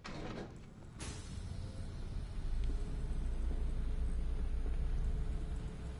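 A heavy metal vault door grinds and rumbles slowly open.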